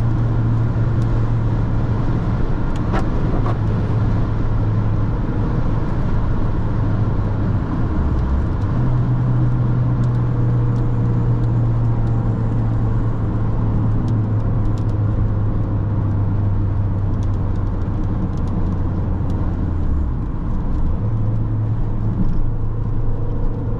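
A small car's engine hums steadily at highway speed.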